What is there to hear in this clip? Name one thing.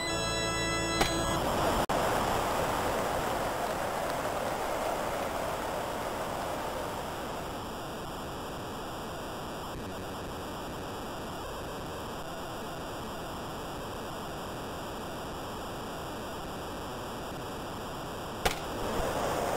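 A bat sharply cracks against a ball.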